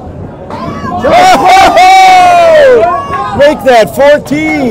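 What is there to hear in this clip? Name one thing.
Men cheer and shout loudly and excitedly.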